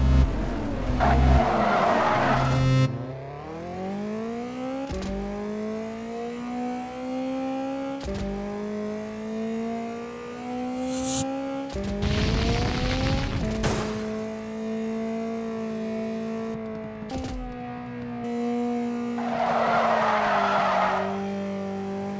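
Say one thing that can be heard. Car tyres screech as a car skids.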